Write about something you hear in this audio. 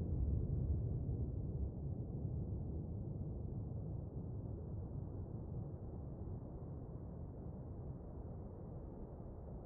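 A submarine rumbles low and deep underwater, slowly fading.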